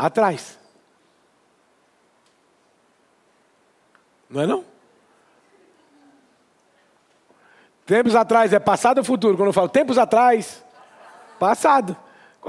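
A man speaks clearly into a nearby microphone, in bursts with pauses, as in a lesson.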